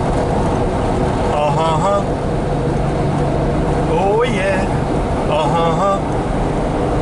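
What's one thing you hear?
A car engine hums steadily with road rumble from inside the car.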